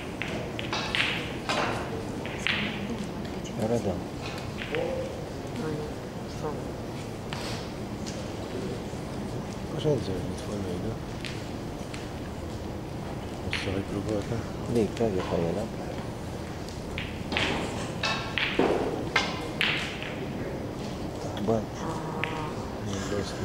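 Snooker balls knock against each other with sharp clicks.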